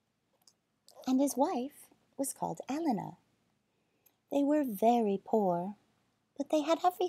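A woman reads aloud expressively, close to the microphone.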